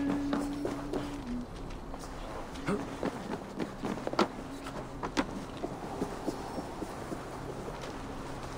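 Footsteps thud and crunch on a snowy wooden roof.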